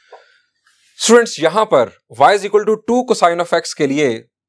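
A man speaks calmly and clearly into a microphone, as if lecturing.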